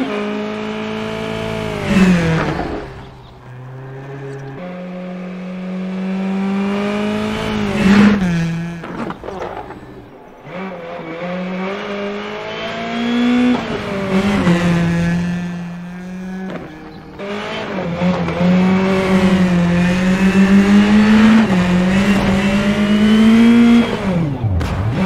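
Gravel crunches and sprays under the tyres.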